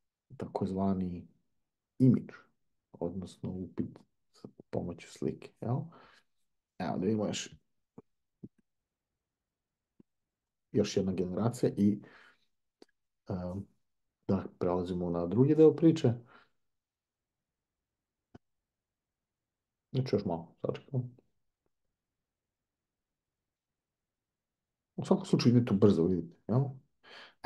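A middle-aged man talks calmly and close to a microphone, in short bursts with pauses.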